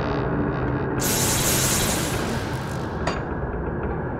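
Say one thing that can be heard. A magic spell bursts with a loud crackling whoosh.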